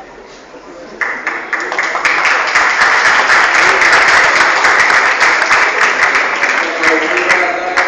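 An audience applauds loudly.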